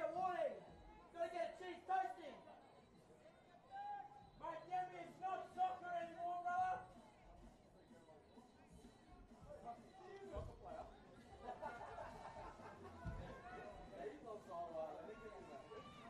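Spectators chatter and call out from the sideline.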